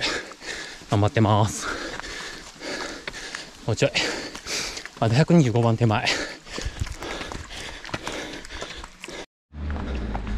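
A middle-aged man talks breathlessly and close up.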